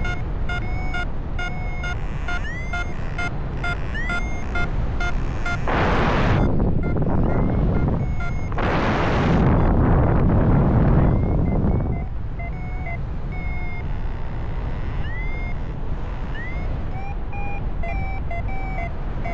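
Wind rushes loudly past, rising into strong gusts for a few seconds.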